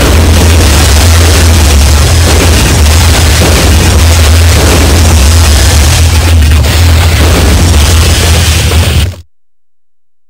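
Fire roars and crackles loudly.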